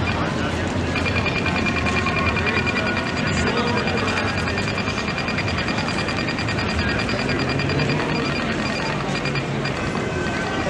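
An ambulance siren sounds as an ambulance drives past.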